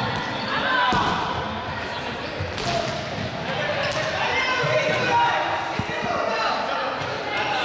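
Sneakers squeak and thud on a hard floor.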